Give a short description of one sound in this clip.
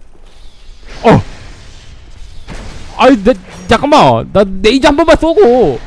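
Flames whoosh and roar.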